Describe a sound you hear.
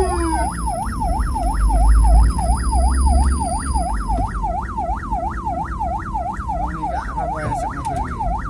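A siren wails in a fast, steady yelp close by.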